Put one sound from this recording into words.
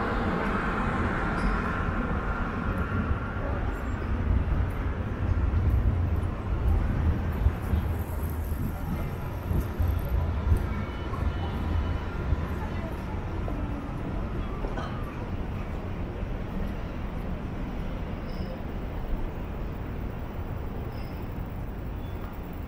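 Footsteps scuff and tap on a paved street.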